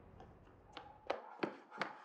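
A man's footsteps scuff on concrete.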